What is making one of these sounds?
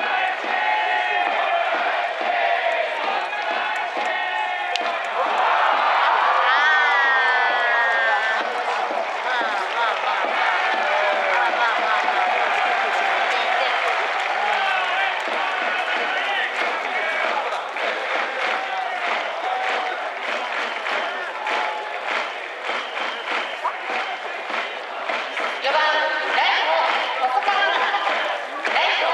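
A large crowd in a baseball stadium cheers and chants.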